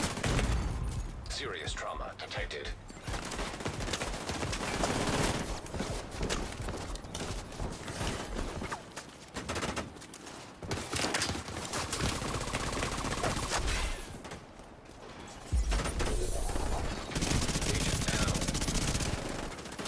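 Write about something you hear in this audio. Gunfire crackles in bursts nearby and farther off.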